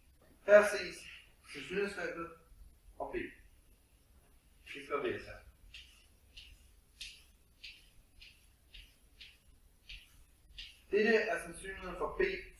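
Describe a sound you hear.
A young man speaks calmly.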